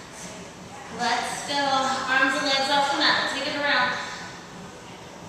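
A woman speaks calmly from a distance in an echoing room.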